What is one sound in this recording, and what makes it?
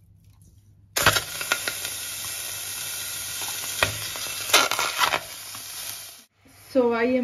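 Raw chicken pieces thud softly into a metal pot.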